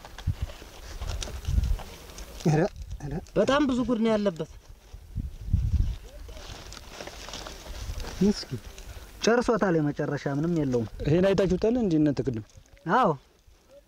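Dry maize husks rustle and tear as hands peel them.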